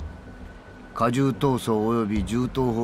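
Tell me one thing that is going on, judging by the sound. An older man speaks sternly and close.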